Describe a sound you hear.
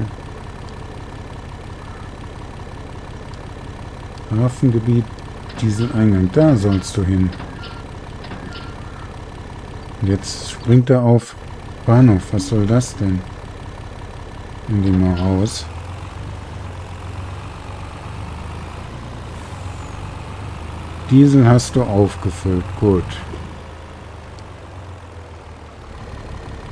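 A truck engine hums steadily as the truck drives slowly.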